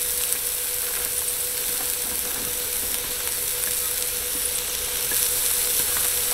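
Chopped green onions patter softly as a hand sprinkles them.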